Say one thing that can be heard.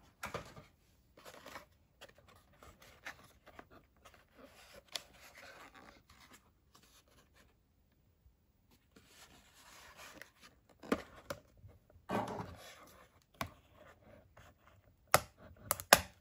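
Plastic packaging crinkles and taps as a hand handles it.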